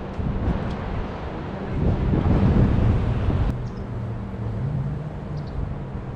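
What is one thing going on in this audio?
Wind blows and rumbles against the microphone outdoors.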